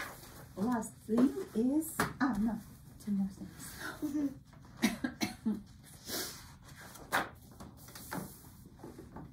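Sheets of paper rustle as pages are turned.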